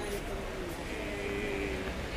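Footsteps tap on a paved sidewalk.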